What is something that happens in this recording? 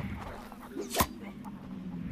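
A knife thuds into a wooden target.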